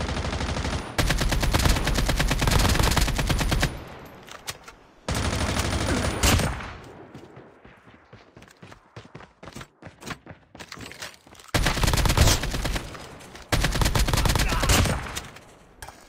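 Rapid rifle fire rattles in loud bursts.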